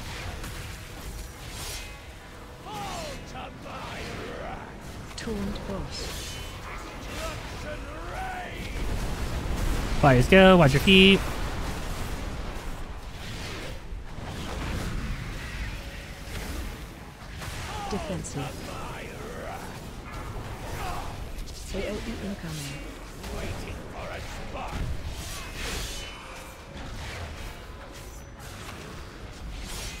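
Spell effects crackle and boom in a video game battle.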